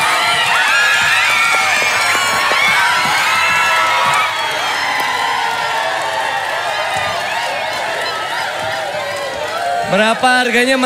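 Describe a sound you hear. A crowd of women screams and cheers excitedly.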